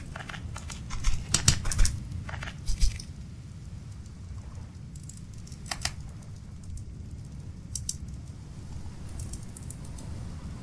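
A campfire crackles and hisses softly.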